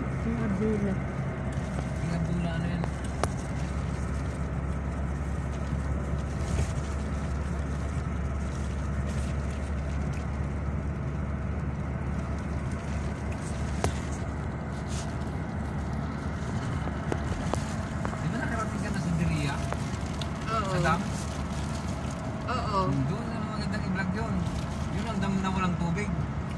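A car engine hums steadily from inside a moving car.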